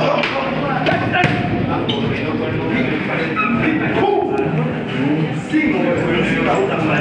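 Boxing gloves thud against punch mitts.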